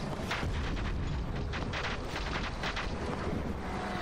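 Light footsteps patter quickly.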